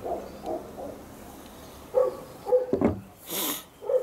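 A glass is set down on a table with a soft knock.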